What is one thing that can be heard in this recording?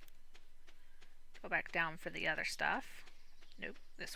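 Soft footsteps patter on dirt.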